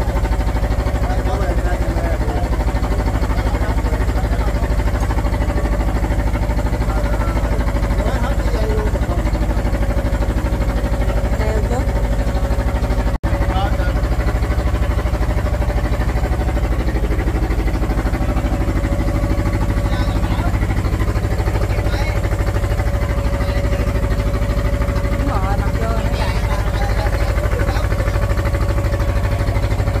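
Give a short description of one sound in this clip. A boat engine chugs loudly and steadily.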